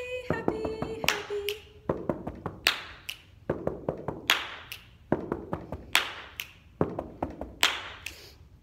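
A young woman claps her hands in a steady rhythm.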